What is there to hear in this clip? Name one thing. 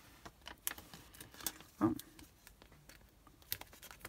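Stiff plastic packaging crinkles and rustles.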